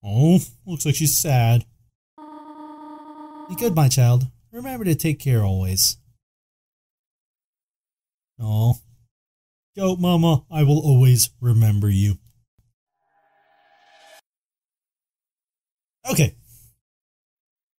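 A young man talks animatedly into a close microphone.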